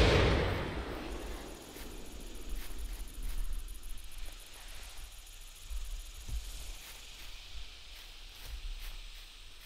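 Footsteps tread steadily over grass.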